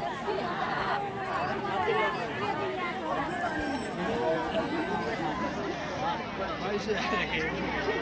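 Women talk with one another nearby.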